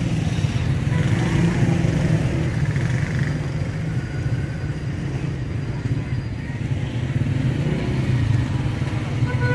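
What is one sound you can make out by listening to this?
Motorcycle engines idle and rumble close by.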